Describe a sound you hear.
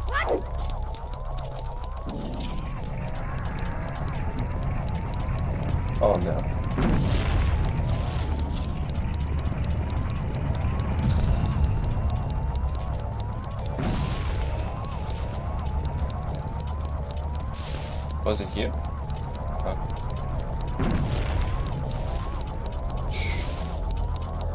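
Electronic game music plays steadily with a repeating rising tone.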